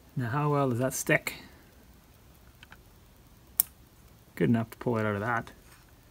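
Hands handle stiff wires with light rustles and clicks.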